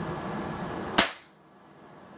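An air rifle's mechanism snaps with a sharp click.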